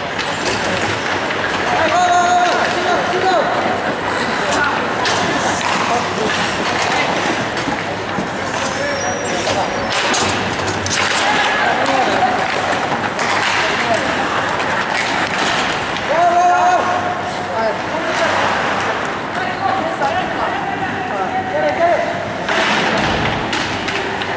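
Hockey sticks clack against each other and the puck.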